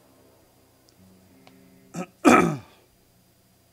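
A man exclaims briefly, close to a microphone.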